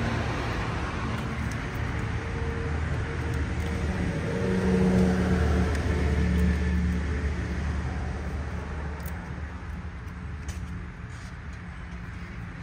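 Hands knock and scrape against a car battery and its cable clamps.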